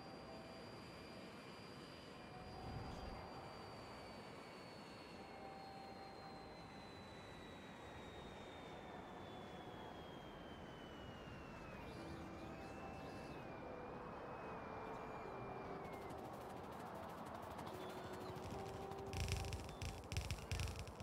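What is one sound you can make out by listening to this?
Machines hum and whir steadily.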